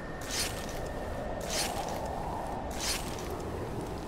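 A blade chops wetly into flesh several times.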